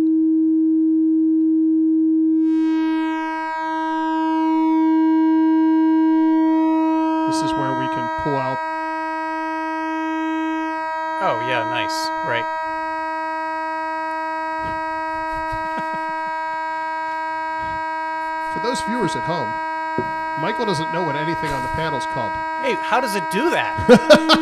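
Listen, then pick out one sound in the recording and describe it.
A synthesizer plays a steady buzzing tone that grows brighter and harsher as knobs are turned.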